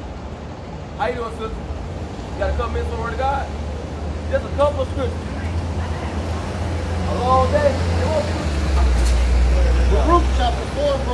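A man speaks loudly and with animation outdoors.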